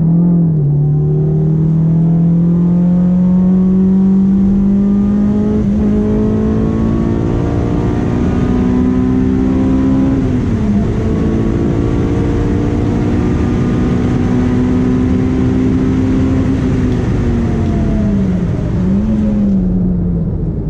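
Wind rushes loudly past a speeding car.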